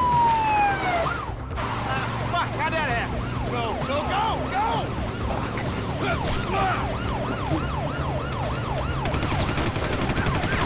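A police siren wails in rapid rising and falling whoops.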